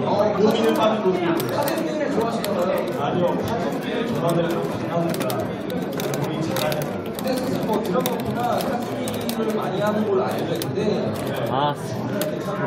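A crowd chatters in the background of a large, echoing hall.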